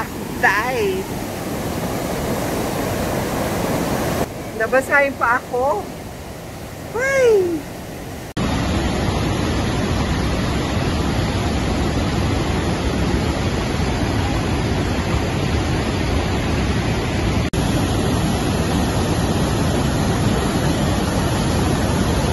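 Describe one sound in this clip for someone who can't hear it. A large waterfall roars outdoors.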